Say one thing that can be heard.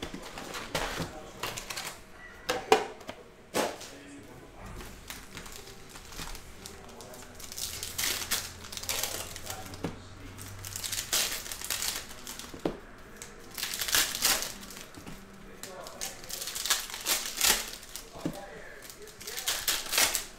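Foil packs tear open.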